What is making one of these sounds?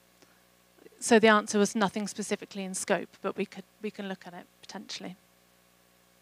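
A woman speaks into a microphone, heard through a loudspeaker.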